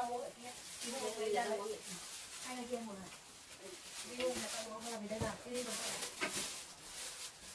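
Young women talk calmly nearby.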